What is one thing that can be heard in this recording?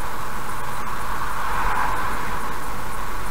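A truck rushes past in the opposite direction.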